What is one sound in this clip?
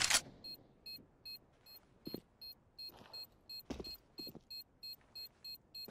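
A rifle is handled with metallic clicks and rattles.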